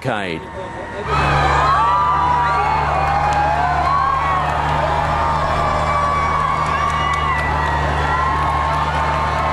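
A large crowd cheers and shouts along a street.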